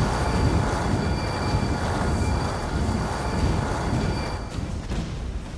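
A magic beam hums and crackles loudly.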